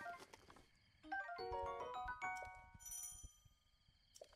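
Short bright game menu chimes ring out in quick succession.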